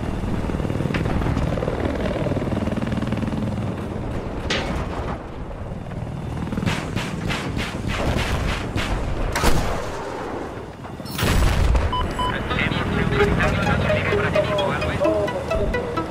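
A helicopter's rotor and engine drone steadily.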